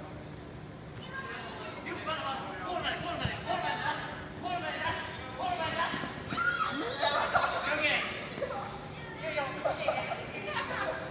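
Children shout and cheer excitedly in a large echoing hall.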